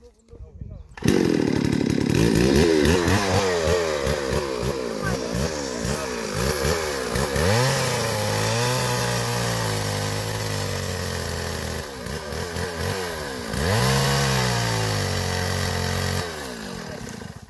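A chainsaw engine roars loudly, revving up and down.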